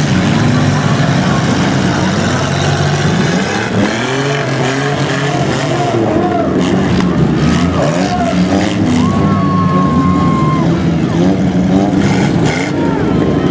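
Car engines rev loudly and roar.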